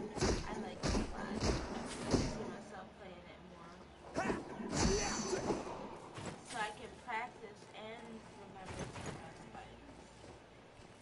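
A young woman speaks and exclaims with animation close to a microphone.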